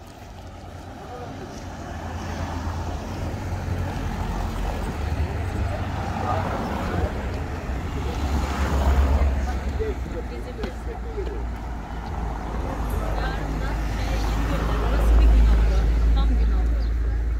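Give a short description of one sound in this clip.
Car engines idle and rumble close by as cars slowly roll past one after another.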